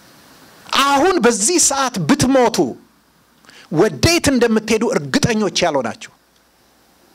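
A middle-aged man preaches with animation into a microphone, in short emphatic bursts.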